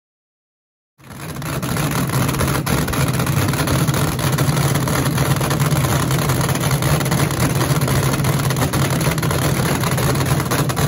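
A dragster engine idles with a loud, rough, steady rumble close by.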